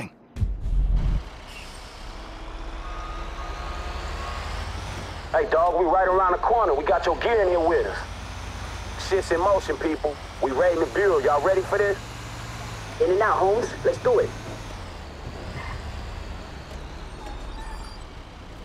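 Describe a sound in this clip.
A fire truck engine rumbles steadily as it drives.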